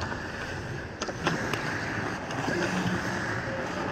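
Hockey sticks clack sharply against a puck in a large echoing hall.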